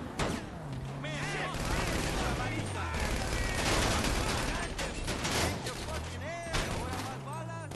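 Tyres screech as the car skids round a corner.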